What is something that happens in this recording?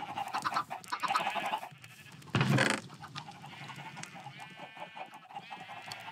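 Chickens cluck nearby.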